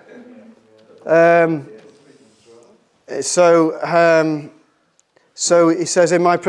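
A middle-aged man speaks calmly into a microphone, reading out in bursts with pauses.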